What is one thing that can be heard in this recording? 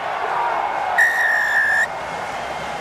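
A referee blows a long, shrill whistle blast.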